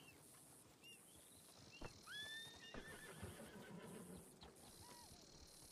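Horse hooves thud on grass as a rider approaches.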